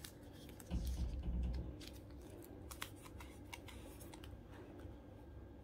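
Glossy cards tick and click softly against plastic.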